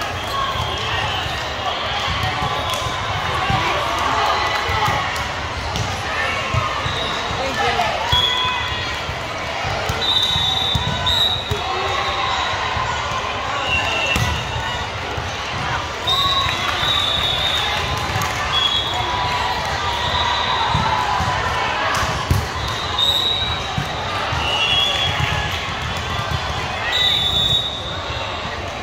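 A ball thuds off a player's hands.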